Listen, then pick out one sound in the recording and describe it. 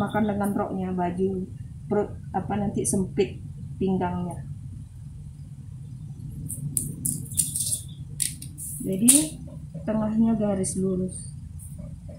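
A middle-aged woman talks calmly nearby.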